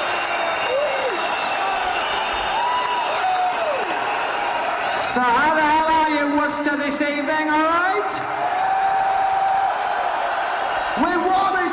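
An electric guitar plays through an amplifier in a large echoing arena.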